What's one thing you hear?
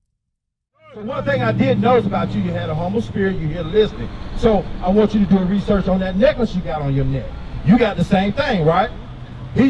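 A man chants loudly and with animation into a microphone.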